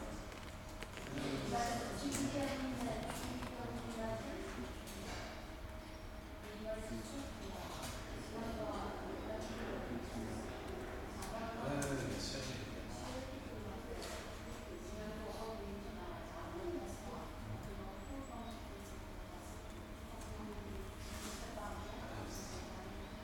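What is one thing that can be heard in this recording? Young children chatter and call out in a large echoing hall.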